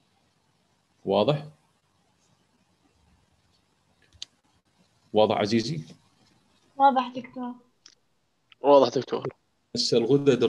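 A man speaks calmly in short phrases, close to a microphone, as in an online call.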